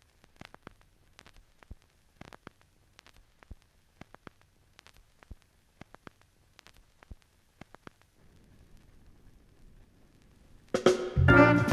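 A vinyl record crackles and pops softly.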